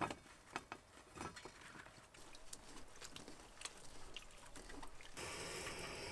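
Strawberries tumble and knock into a metal bowl.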